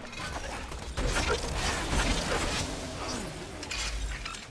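Electric blasts crackle and zap in a video game.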